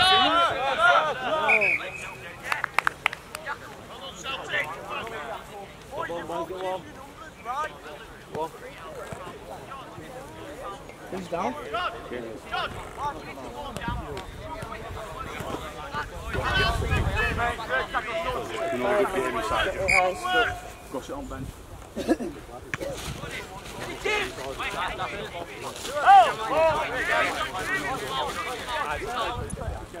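Young men shout and call to each other outdoors.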